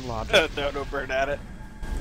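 A magic spell fires with a sharp crackle.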